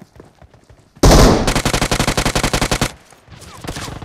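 An automatic rifle fires a rapid burst of gunshots in a video game.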